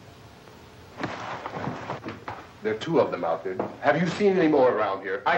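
A man speaks urgently close by.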